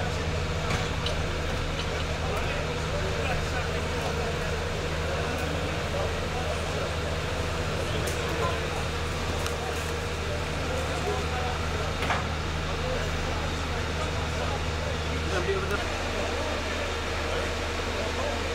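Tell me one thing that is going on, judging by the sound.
An engine idles with a low, steady hum.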